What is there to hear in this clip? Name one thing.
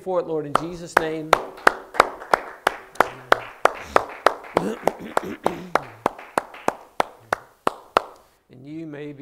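A man claps his hands in a steady rhythm.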